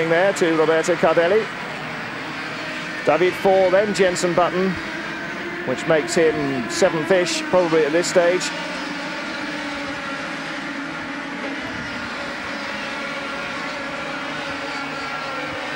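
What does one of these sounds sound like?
Kart engines buzz and whine as karts race past.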